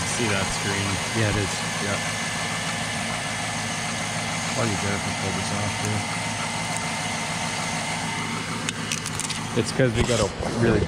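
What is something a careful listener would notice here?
A car engine idles steadily close by.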